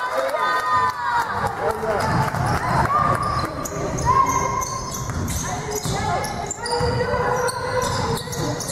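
Basketball shoes squeak sharply on a hard court in a large echoing hall.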